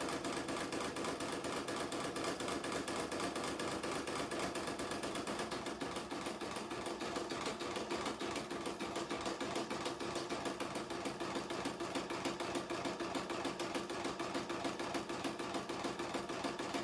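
An embroidery machine stitches with a fast, steady mechanical rattle.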